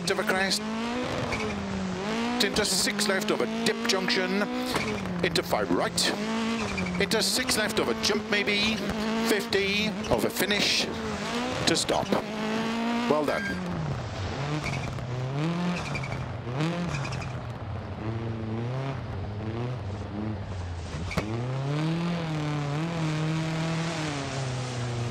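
A rally car engine revs hard and shifts gears.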